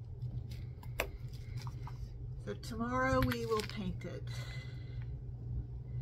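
A small glass jar clinks as it is picked up from a table.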